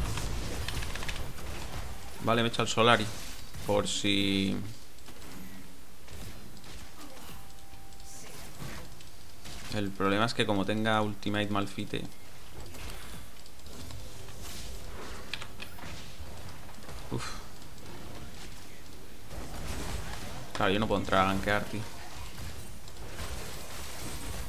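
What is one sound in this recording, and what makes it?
Video game combat effects crackle and whoosh.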